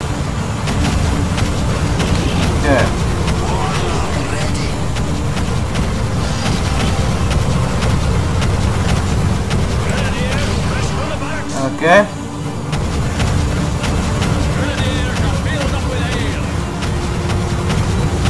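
A dragon's wings beat with deep, steady whooshes.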